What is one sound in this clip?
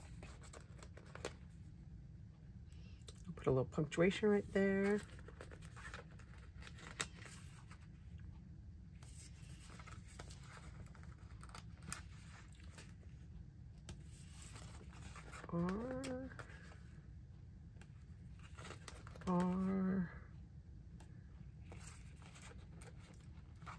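Stickers peel off a paper backing with soft crinkles and taps.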